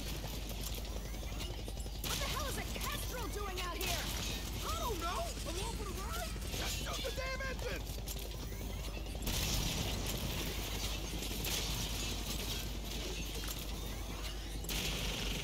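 A helicopter's rotor thumps and whirs overhead.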